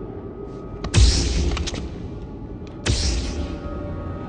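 Energy blades ignite with a loud crackling hum.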